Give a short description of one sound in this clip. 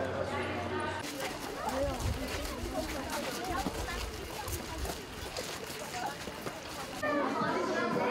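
Children chatter outdoors.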